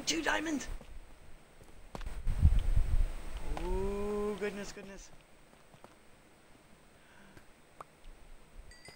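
A pickaxe chips and knocks at stone blocks.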